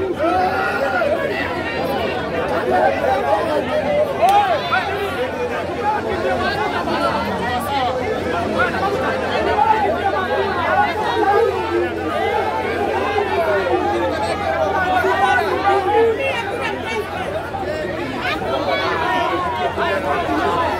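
A large outdoor crowd of men and women chatters and shouts close by.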